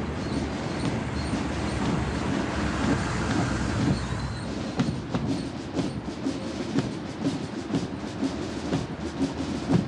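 Heavy vehicle engines rumble as they drive past outdoors.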